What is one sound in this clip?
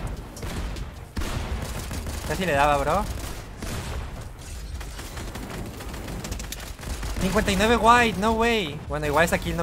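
Game building sounds clatter and thud rapidly.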